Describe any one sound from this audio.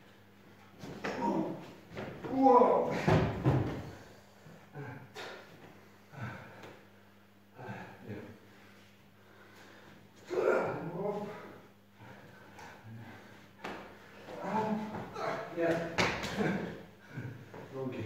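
A body thuds onto a padded mat.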